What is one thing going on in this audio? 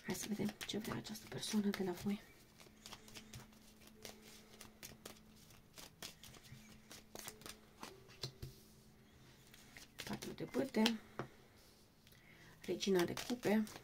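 A deck of cards is shuffled with quick, soft clicks.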